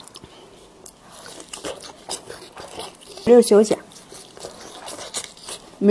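A young woman chews and slurps food noisily close to a microphone.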